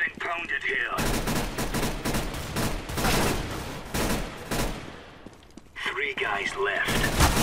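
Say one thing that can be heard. A submachine gun fires rapid bursts up close.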